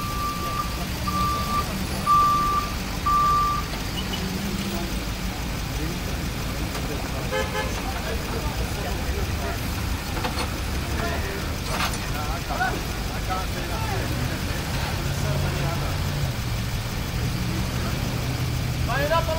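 A tow truck engine idles with a low steady rumble.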